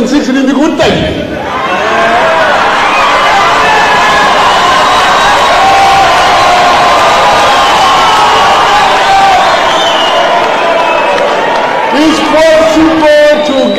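A crowd cheers and sings loudly.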